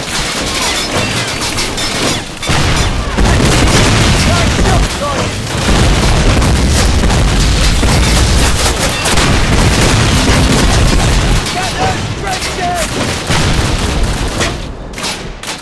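Heavy gunfire bursts and booms nearby.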